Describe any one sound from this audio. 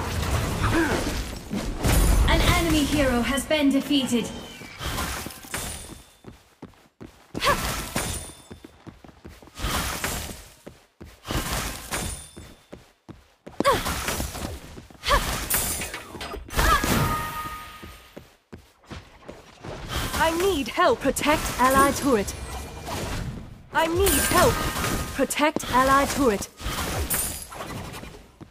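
Magic spells whoosh and burst in quick bursts.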